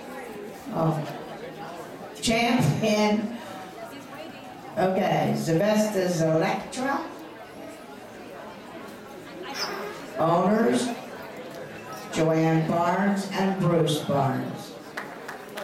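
A woman speaks in short bursts nearby, in a large echoing hall.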